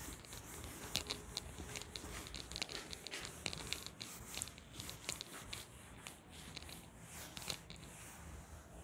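A duster rubs and squeaks against a whiteboard.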